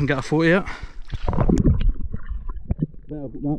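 A fish splashes into water.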